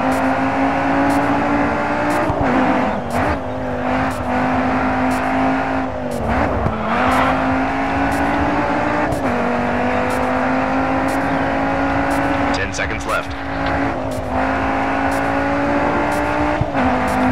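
A racing car engine roars at high revs, dropping briefly at each gear change.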